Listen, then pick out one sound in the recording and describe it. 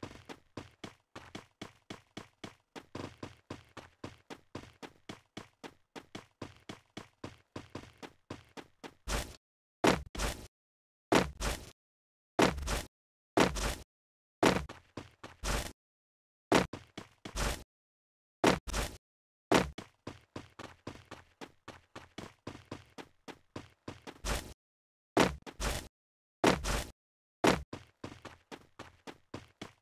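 Footsteps run quickly and steadily.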